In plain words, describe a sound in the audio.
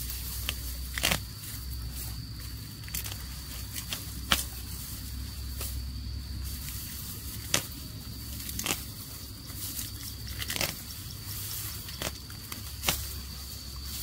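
A knife snaps through tough grass stems with sharp cracks.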